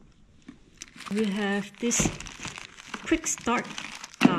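Plastic wrapping crinkles under a hand.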